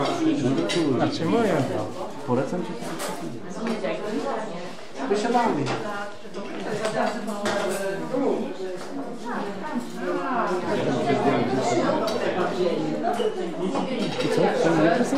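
Several adults chatter in the background of a room.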